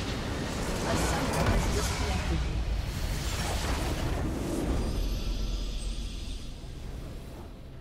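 A large structure explodes with a deep rumbling boom.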